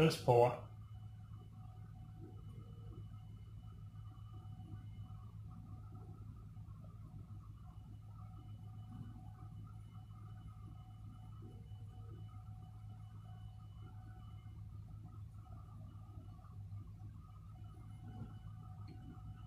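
Beer pours from a tap into a glass, hissing softly.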